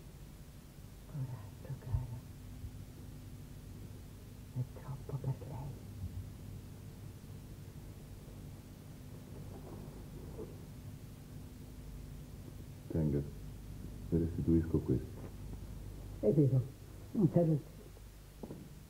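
A woman answers quietly.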